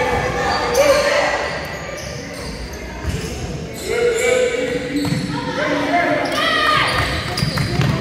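Young girls shout and call out across a large echoing gym.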